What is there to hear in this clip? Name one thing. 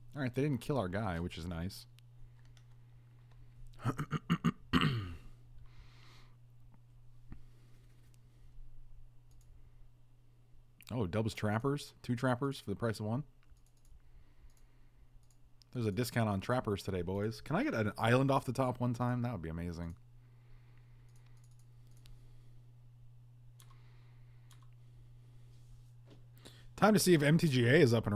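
A middle-aged man talks calmly into a close microphone, in bursts with pauses.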